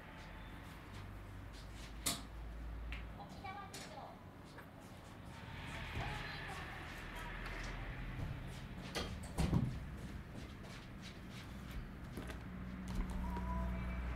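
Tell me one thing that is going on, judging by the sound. Paper rustles and pages are handled.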